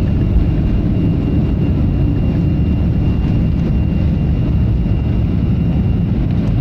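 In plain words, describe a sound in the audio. Jet engines roar loudly and steadily as an airliner takes off.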